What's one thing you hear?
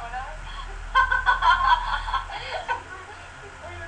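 Two young women laugh loudly together.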